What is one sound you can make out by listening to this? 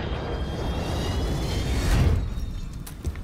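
Jet engines roar loudly as a large plane flies close by.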